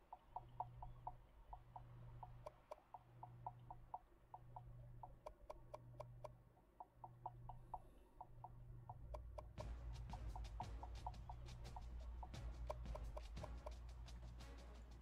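Soft electronic menu clicks tick in a quick, steady rhythm.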